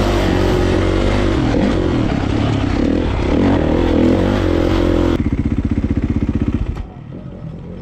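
A dirt bike engine roars loudly up close.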